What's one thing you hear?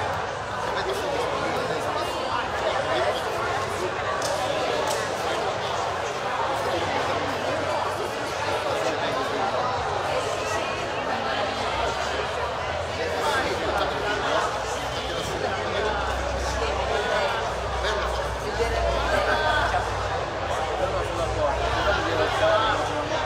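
A man strums an acoustic guitar through loudspeakers in a large echoing hall.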